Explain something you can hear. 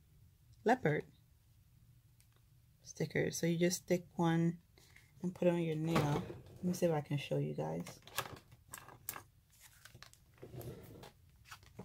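A sheet of stickers rustles softly as hands handle it.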